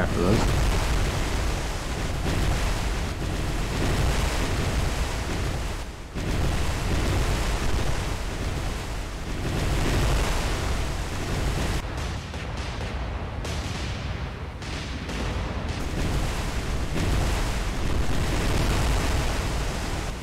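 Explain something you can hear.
Heavy guns boom in rumbling bursts.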